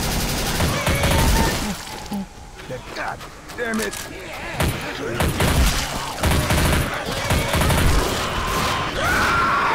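An automatic rifle fires in short, loud bursts.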